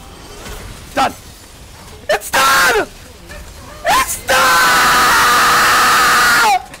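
A young man shouts loudly and excitedly into a close microphone.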